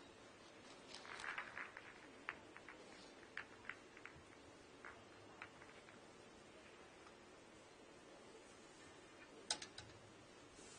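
Billiard balls click and clack together as they are gathered and racked.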